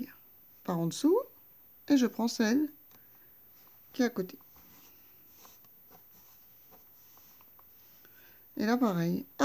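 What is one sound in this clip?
Yarn softly rustles as it is drawn through crocheted fabric.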